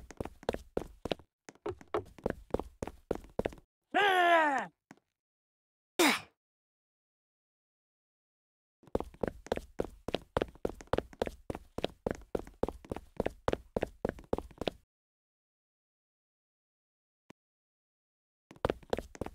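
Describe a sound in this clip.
Quick footsteps tap in a steady running rhythm.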